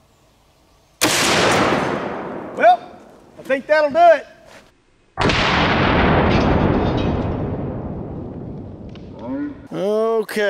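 A rifle fires a loud shot that echoes away outdoors.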